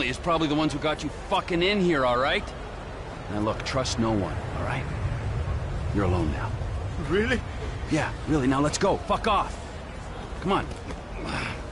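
A man speaks with animation at close range.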